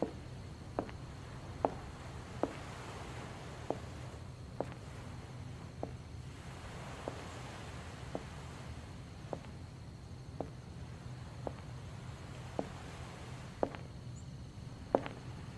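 Footsteps tap slowly and evenly on pavement.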